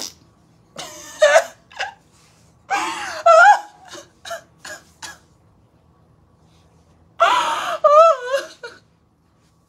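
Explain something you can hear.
A young woman wails and cries loudly.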